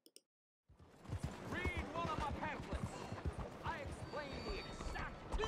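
Horse hooves clop steadily on a cobbled street.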